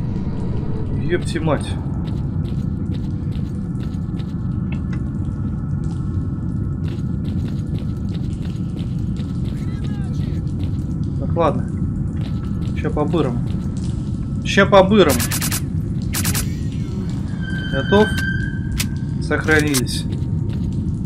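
A man talks now and then into a close microphone.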